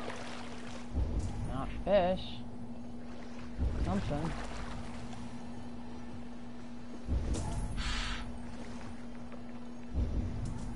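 Oars splash through water in steady strokes.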